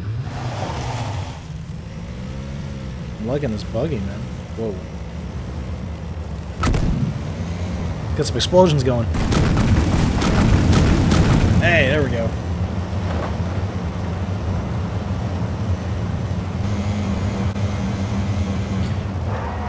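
A buggy engine hums and revs steadily.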